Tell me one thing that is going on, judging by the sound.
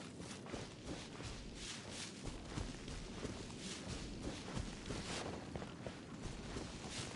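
Quick footsteps swish through tall grass.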